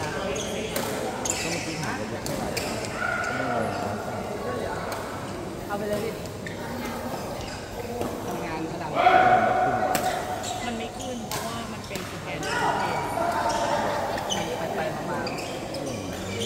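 Shuttlecocks are struck with sharp pops in a large echoing hall.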